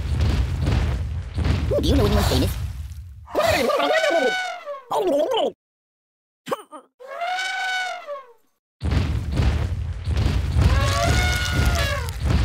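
An elephant trumpets loudly.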